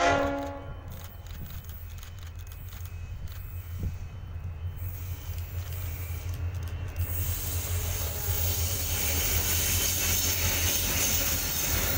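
A diesel locomotive approaches with a growing, deep rumble.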